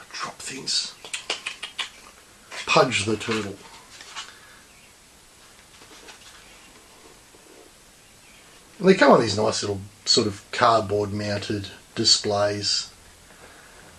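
A man talks calmly and close by, with pauses.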